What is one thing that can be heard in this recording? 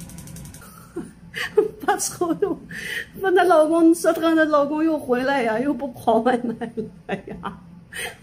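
A middle-aged woman laughs loudly, close by.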